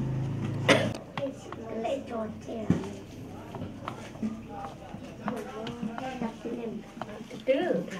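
Young women and children talk and chatter close by.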